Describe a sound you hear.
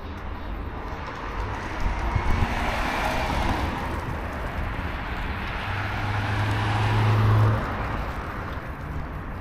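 Cars pass by on a nearby street.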